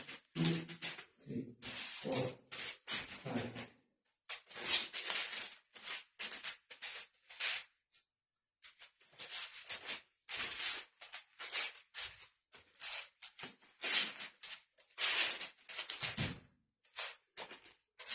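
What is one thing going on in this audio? Two sticks swish sharply through the air in quick swings.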